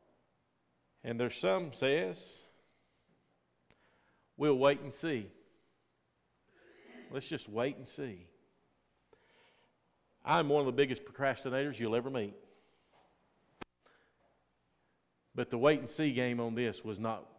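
A middle-aged man speaks calmly into a microphone, in bursts with pauses, in a room with a slight echo.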